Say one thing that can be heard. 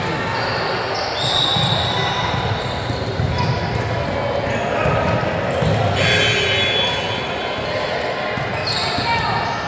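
Young women call out to one another in a large echoing gym.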